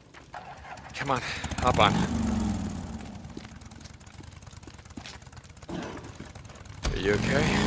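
A motorcycle engine starts and revs up, then idles with a low rumble.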